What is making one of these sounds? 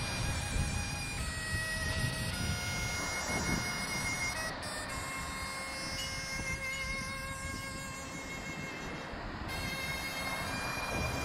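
Small waves wash and fizz onto a sandy shore.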